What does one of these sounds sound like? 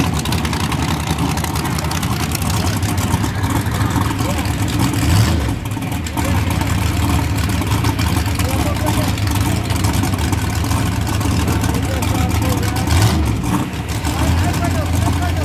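A race car engine idles with a loud, lumpy rumble close by.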